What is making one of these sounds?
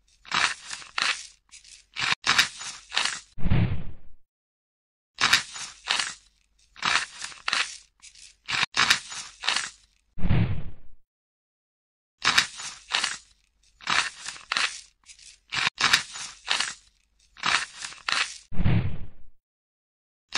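A knife scrapes and crunches through a layer of tiny seeds in short, repeated bursts.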